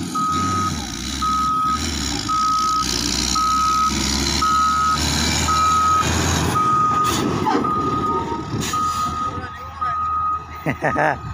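A grader's warning alarm beeps at an even pace, then stops.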